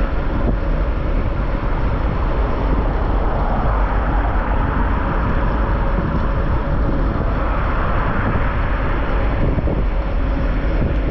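Wind rumbles loudly across a microphone outdoors.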